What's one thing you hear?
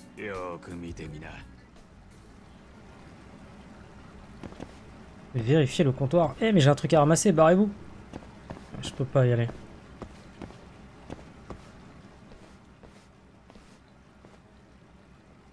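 Footsteps tap softly on a hard floor.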